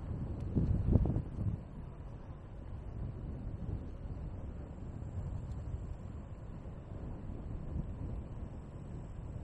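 Wind buffets with a low, steady rumble.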